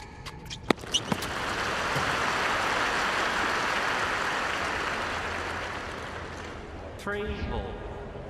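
A crowd applauds and cheers in a large arena.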